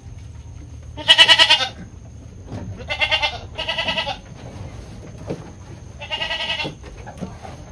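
Goats bleat in a wavering voice.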